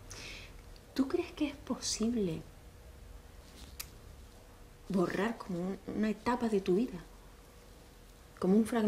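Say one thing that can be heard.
A young woman speaks quietly and thoughtfully, close by.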